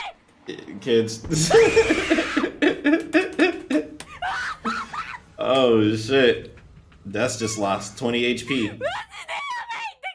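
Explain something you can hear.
A young man laughs loudly and excitedly close to a microphone.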